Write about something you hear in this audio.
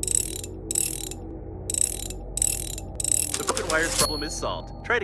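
Short bursts of hissing crackle sound as a wrench works on broken wires.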